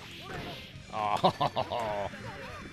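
Punches and kicks land with sharp hits in a video game.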